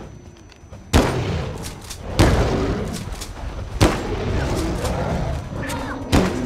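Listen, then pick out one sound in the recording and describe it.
Gunshots ring out in rapid bursts.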